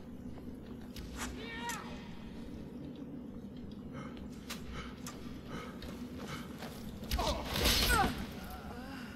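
A sword strikes with sharp metallic clangs.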